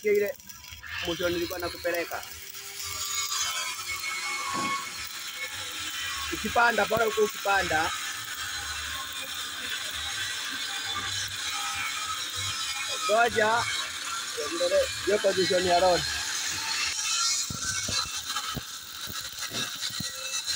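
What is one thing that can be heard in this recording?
A welding arc crackles and sizzles steadily.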